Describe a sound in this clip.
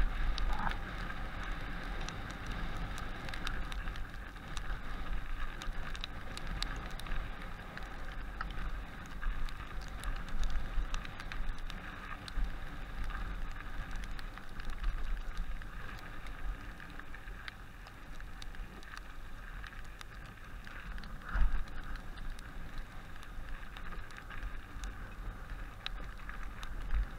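Bicycle tyres crunch and rattle over a snowy, bumpy trail.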